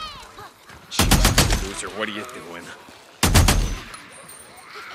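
A rifle fires loud bursts of shots.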